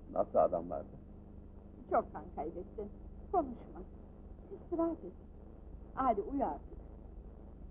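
A young woman speaks calmly and close by, in short phrases.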